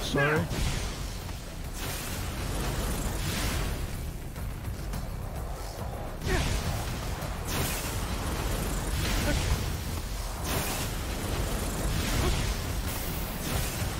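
Explosions boom in bursts.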